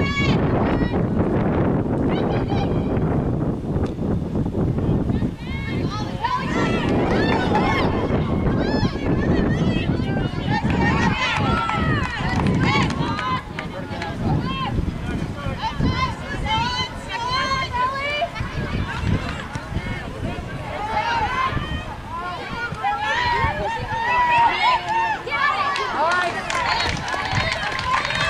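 Young women shout to each other across a field.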